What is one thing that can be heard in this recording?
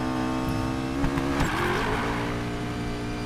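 Tyres screech briefly on asphalt.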